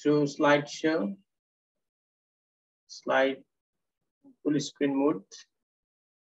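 A man speaks calmly in short phrases through an online call.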